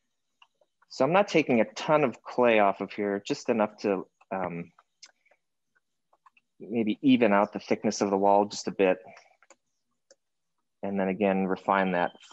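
A man talks calmly and explains, heard close through a microphone.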